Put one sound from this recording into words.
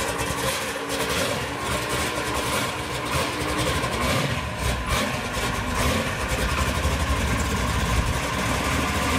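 A car engine rumbles as the car rolls slowly past.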